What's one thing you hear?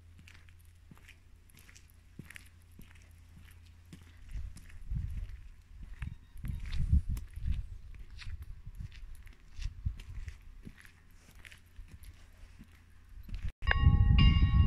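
Footsteps tap on a pavement outdoors.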